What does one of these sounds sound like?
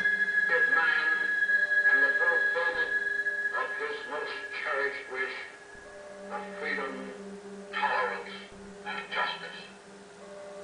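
An elderly man speaks slowly into a microphone, heard through an old, crackly recording.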